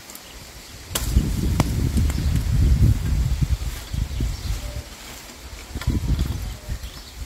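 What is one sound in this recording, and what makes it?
Wind blows outdoors and buffets the microphone.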